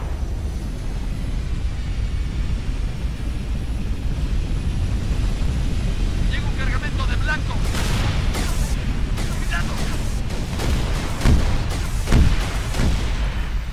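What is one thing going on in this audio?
An aircraft's rotors roar with a deep, steady drone.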